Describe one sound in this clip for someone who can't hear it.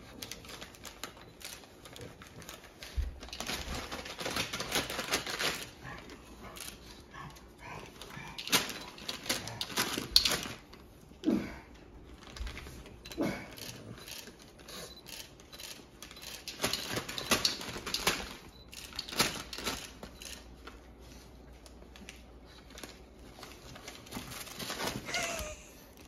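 A dog sniffs and snuffles close by.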